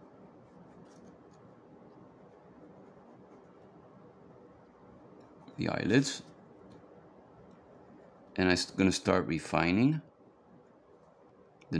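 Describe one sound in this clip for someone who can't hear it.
A pencil scratches softly on paper.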